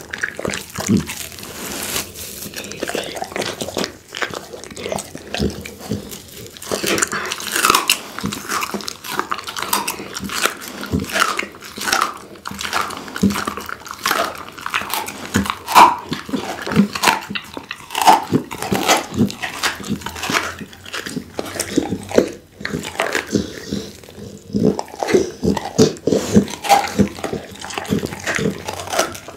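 A pit bull chews and tears at raw meat close to a microphone, with wet smacking sounds.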